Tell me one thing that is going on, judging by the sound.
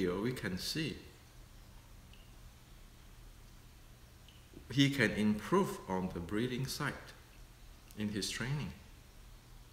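A middle-aged man speaks calmly and close by, with pauses.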